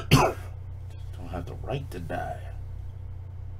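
A man laughs and talks with animation close to a microphone.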